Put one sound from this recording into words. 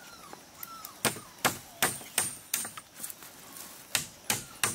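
A metal tool knocks sharply against bamboo in a steady rhythm.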